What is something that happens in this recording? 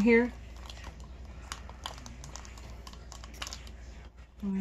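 A small plastic case clicks and rattles in a hand.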